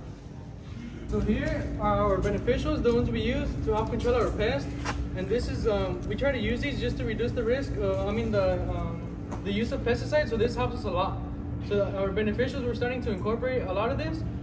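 A man talks calmly to a small group nearby.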